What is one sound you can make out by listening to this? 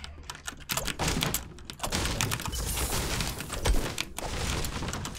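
A pickaxe strikes and breaks through a wall with sharp thuds.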